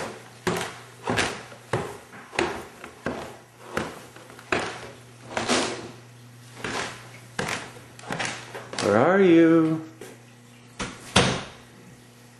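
Footsteps thump steadily on a hard floor.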